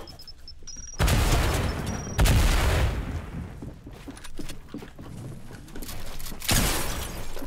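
Wooden walls are built with quick clattering thuds.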